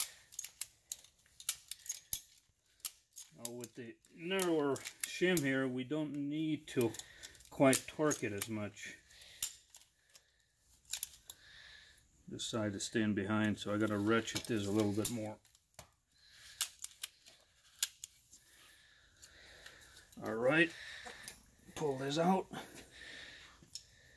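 Metal tool parts click and clink as they are handled.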